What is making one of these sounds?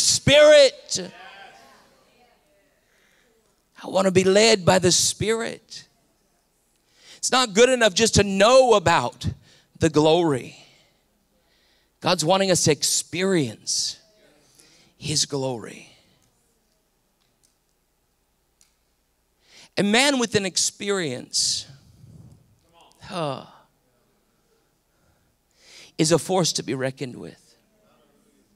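A middle-aged man speaks with animation into a microphone, in short phrases with pauses.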